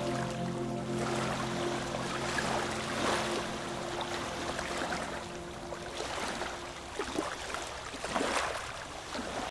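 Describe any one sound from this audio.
Small waves lap and splash against the shore.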